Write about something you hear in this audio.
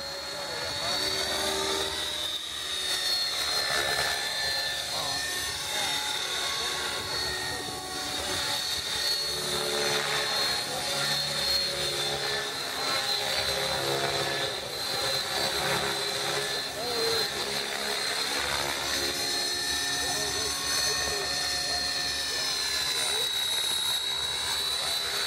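Model helicopter rotor blades whir and swish, with the pitch rising and falling.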